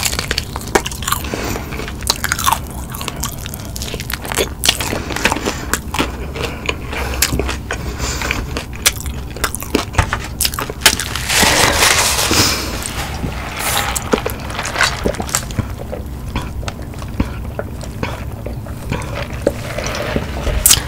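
A woman bites and chews crispy fried food close to a microphone.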